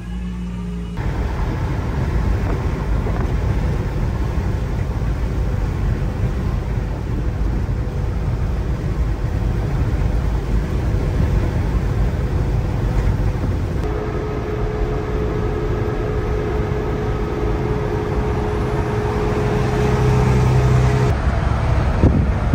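Tyres roar steadily on a highway.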